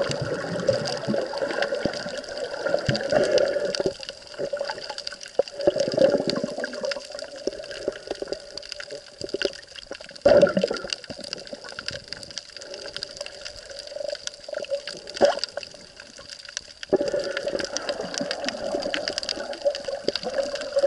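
Muffled underwater water noise rumbles and swirls, with bursts of bubbling.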